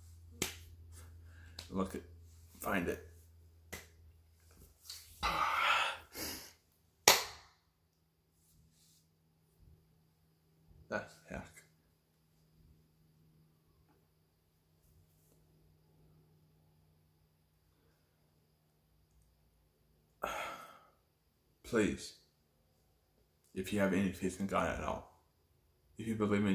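A young man talks calmly and close up, in short bursts with pauses.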